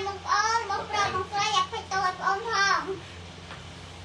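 A young child speaks close by with animation.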